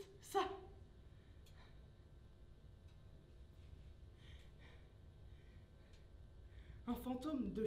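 A young woman speaks loudly and with emotion in a room with some echo.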